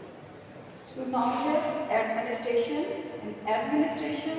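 A woman speaks up close, explaining in a teacher's voice.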